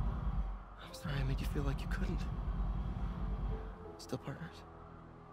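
A young man speaks apologetically.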